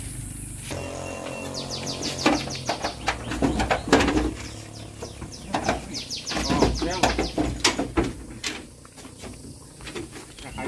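Hooves thump and scrape on a wooden floor.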